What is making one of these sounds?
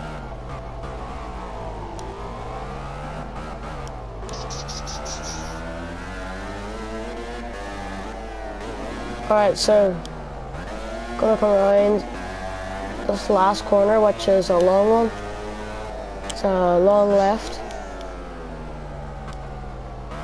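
A racing motorcycle engine whines, revving up and dropping with each gear change.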